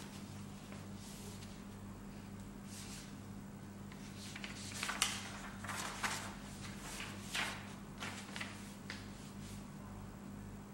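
Paper sheets rustle as they are handled.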